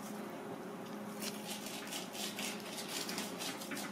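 A knife scrapes and slices along fish skin.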